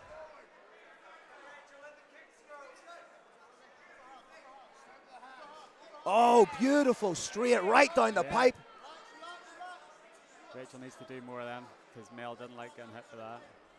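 A crowd murmurs and calls out in a large hall.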